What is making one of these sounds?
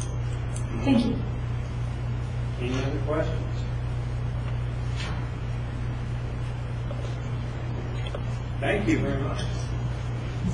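An elderly man speaks in short bursts, with pauses, in an echoing room.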